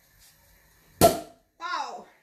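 A champagne cork pops loudly.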